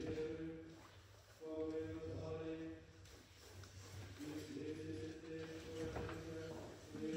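A small choir of men and women sings slow sustained chords in a reverberant hall.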